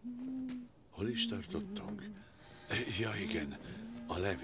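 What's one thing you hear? A middle-aged man speaks quietly and close by.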